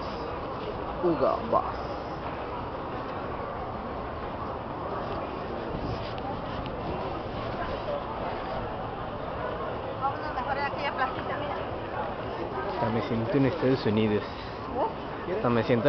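People talk loudly close by.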